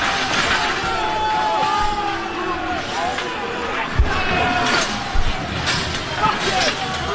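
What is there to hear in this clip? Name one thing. Metal barriers clang and rattle as they are shoved and thrown.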